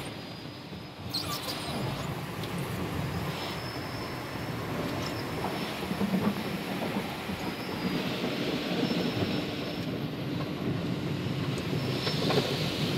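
Water sprays and splashes against a car's windows.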